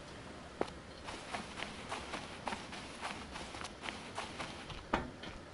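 Footsteps crunch softly on sand at a steady walking pace.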